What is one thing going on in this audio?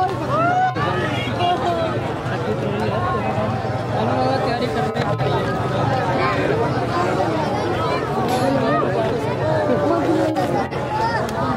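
A large outdoor crowd of men talks and shouts excitedly.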